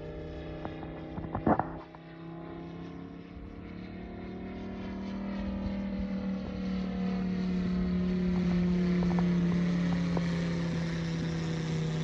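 A propeller plane engine drones overhead, growing steadily louder as it approaches.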